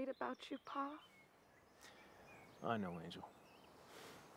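A woman sighs and speaks softly, close by.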